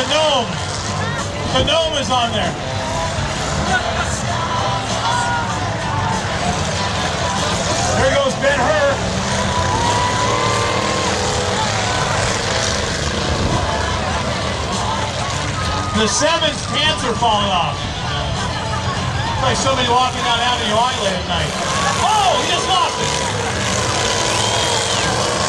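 A crowd in the stands talks and cheers.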